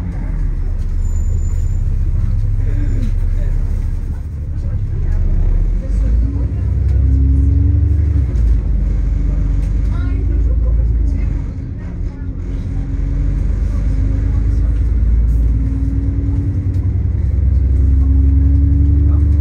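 A bus engine rumbles deeply from inside as the bus drives along.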